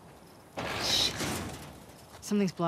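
A metal door rattles as it is pushed.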